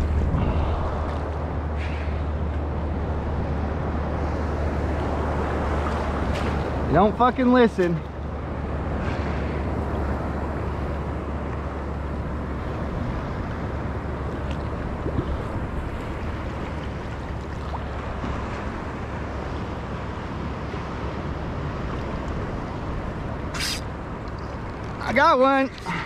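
Waves wash and lap steadily all around.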